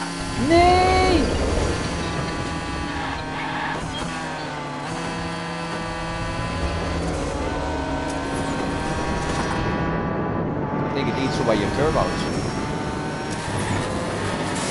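A racing car engine whines and roars steadily, rising and falling in pitch.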